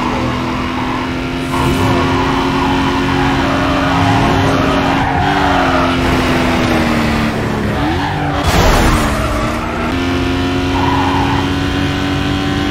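A car engine roars at high revs, its pitch shifting with gear changes.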